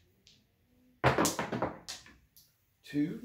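Dice clatter and tumble across a felt table.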